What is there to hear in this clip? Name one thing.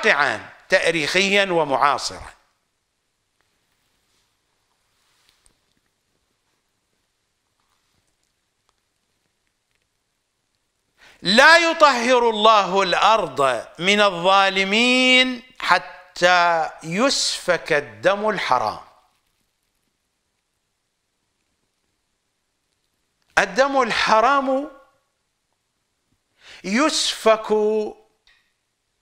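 An older man speaks with animation into a close microphone, pausing between phrases.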